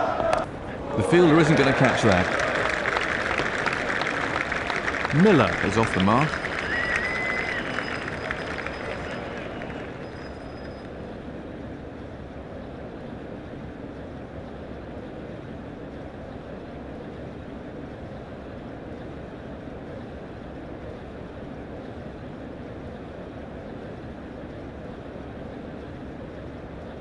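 A stadium crowd cheers and roars, then dies down to a steady murmur.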